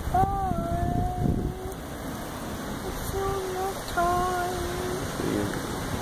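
A toddler talks in a high, sing-song voice close by.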